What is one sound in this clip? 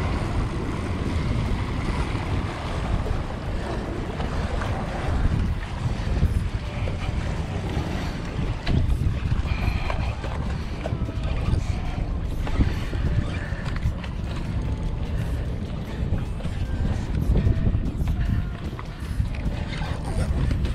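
Waves wash against rocks.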